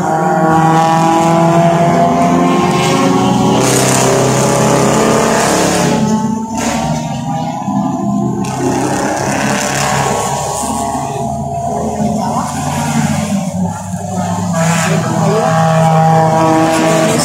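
Racing car engines roar and whine as they speed around a track.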